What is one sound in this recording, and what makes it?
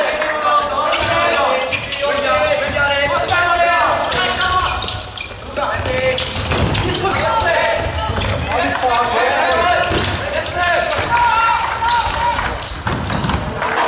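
A ball thuds as players kick it on a hard indoor court.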